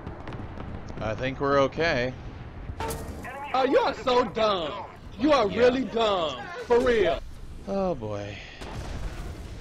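A young man shouts loudly and expressively.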